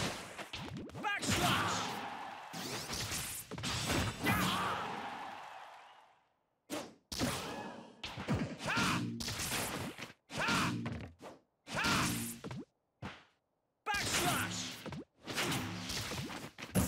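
Quick whooshes and hits ring out from a fighting game.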